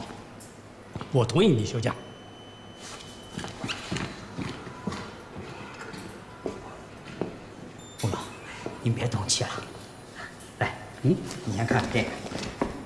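A younger man speaks politely nearby.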